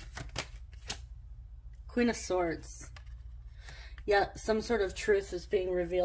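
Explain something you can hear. A card slides softly across a cloth-covered table.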